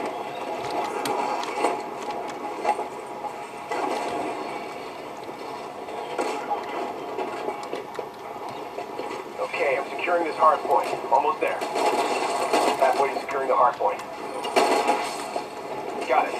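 Gunfire rattles from a video game.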